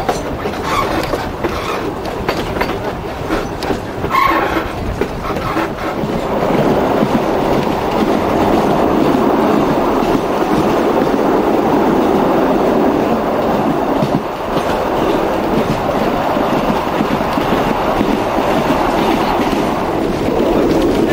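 A train rumbles and clatters steadily along its track.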